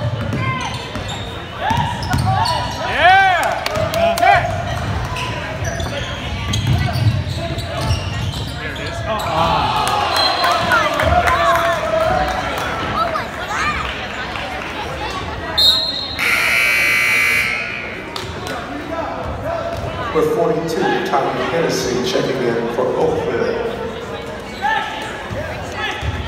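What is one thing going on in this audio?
A small crowd of spectators murmurs and cheers.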